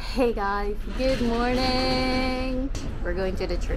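A young woman sings a few drawn-out notes.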